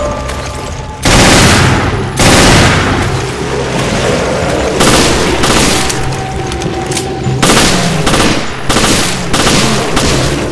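A gun fires loud shots in bursts.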